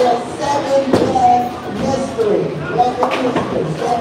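A bowling ball rolls down a lane.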